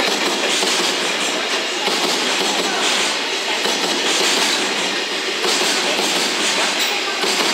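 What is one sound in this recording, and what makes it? A freight train rumbles steadily past at close range.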